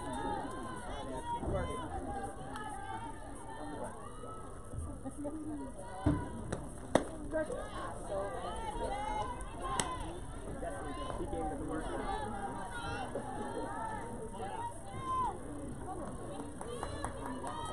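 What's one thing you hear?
Young women chatter and cheer loudly across an open field.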